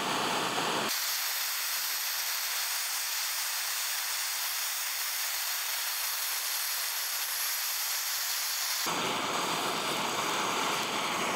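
A blowtorch roars steadily.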